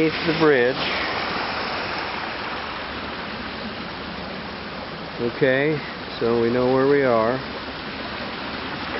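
Muddy river water rushes and churns steadily outdoors.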